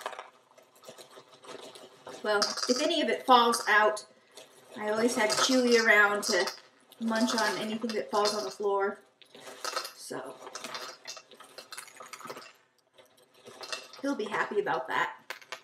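Pasta rattles as it is poured from a box.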